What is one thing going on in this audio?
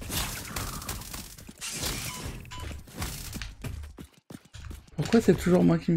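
A blade swings and strikes with a sharp electric zap.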